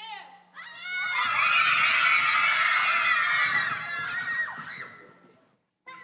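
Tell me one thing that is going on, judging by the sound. A group of children shout together loudly.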